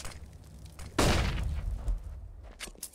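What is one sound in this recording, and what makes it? Gunshots crack nearby.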